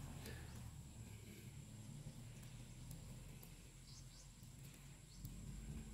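A lighter clicks and flares.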